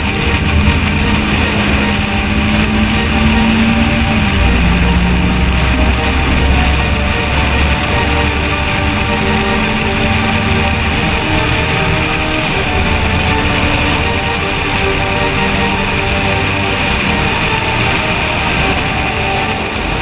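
A turbocharged rally car engine roars at speed.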